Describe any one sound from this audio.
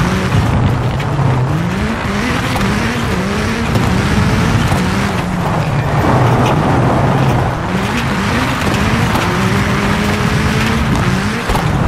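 Tyres crunch and skid over loose gravel.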